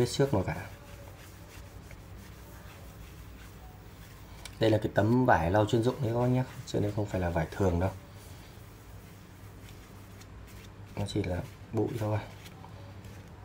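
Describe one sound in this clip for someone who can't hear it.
A cloth rubs softly against a phone's surface.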